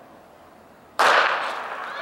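A starting pistol fires once with a sharp crack that echoes.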